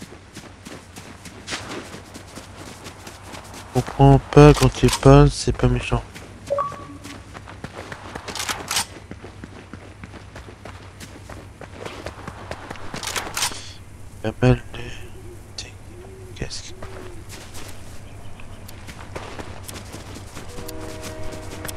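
Footsteps patter quickly on grass and gravel.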